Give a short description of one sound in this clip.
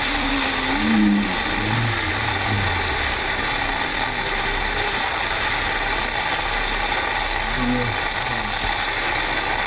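Water hisses and splashes steadily as bodies slide along a wet slide.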